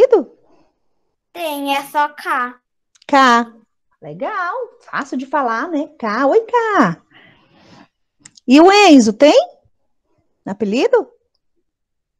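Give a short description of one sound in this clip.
A woman speaks calmly and clearly, as if teaching, heard through an online call.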